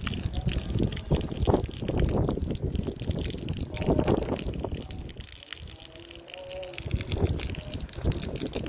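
Rainwater pours off a roof and splashes onto the ground.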